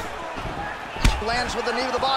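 A kick lands with a sharp thud.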